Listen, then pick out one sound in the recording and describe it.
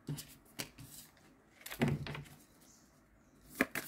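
A card slaps down onto a wooden table.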